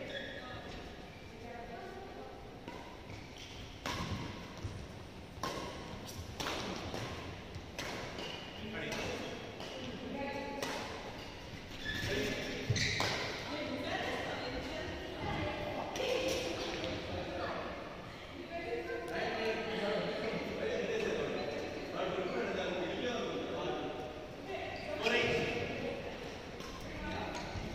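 Players' shoes squeak on the court floor.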